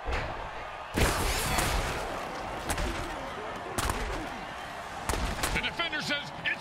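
Heavy armoured bodies thud and crash together.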